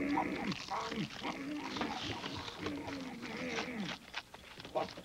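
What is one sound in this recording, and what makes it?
A man speaks in a gruff, growly puppet voice with animation.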